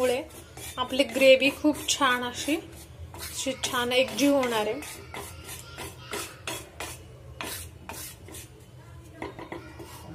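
A wooden spatula scrapes and taps against a dry metal pan.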